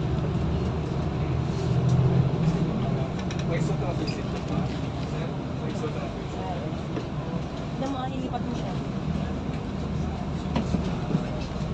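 A vehicle's engine hums steadily as it drives along a road.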